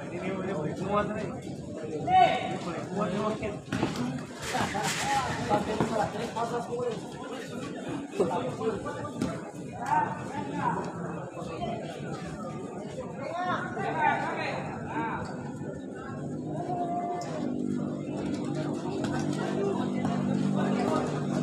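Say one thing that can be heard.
A crowd of spectators chatters and shouts.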